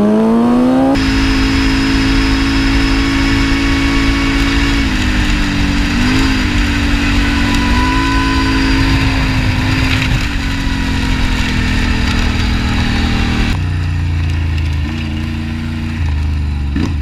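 A quad bike engine drones steadily at speed.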